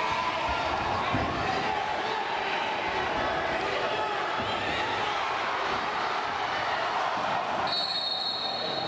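A large crowd cheers and shouts steadily in a big echoing hall.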